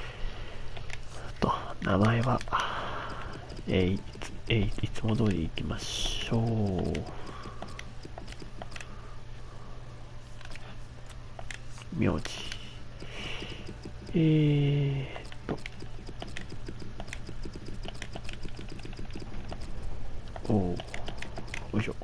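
Short electronic menu clicks tick as letters are picked one by one.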